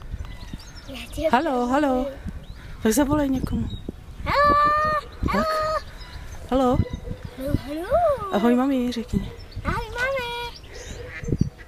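A young girl talks and sings brightly close by.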